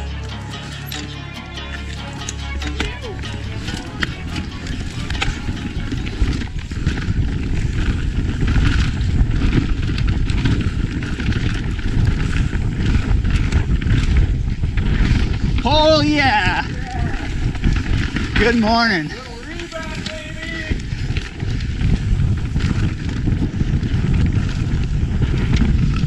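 A mountain bike rattles and clatters over bumps.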